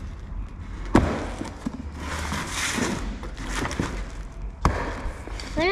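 A cardboard box is torn open.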